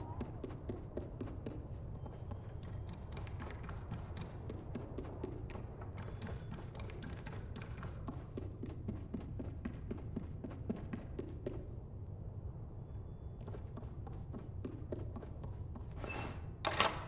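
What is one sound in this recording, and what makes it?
Small footsteps patter on wooden stairs and floorboards.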